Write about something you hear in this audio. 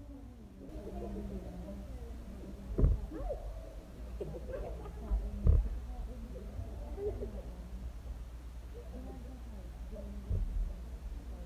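Two young women laugh loudly together.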